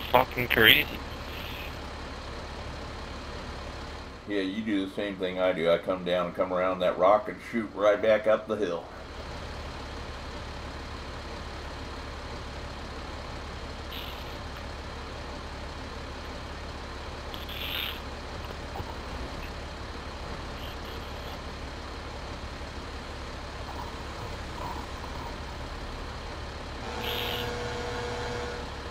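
A truck engine rumbles steadily at low pitch.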